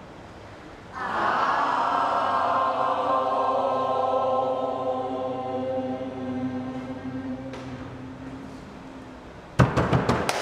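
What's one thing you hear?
A group of young people sing together.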